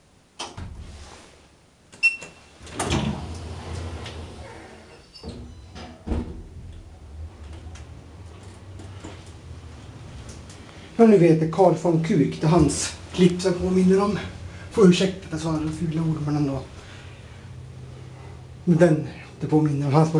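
An elevator motor hums low and steadily.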